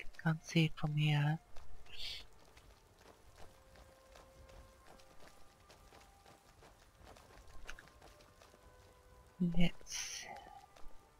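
Footsteps crunch on a stony path at a steady walking pace.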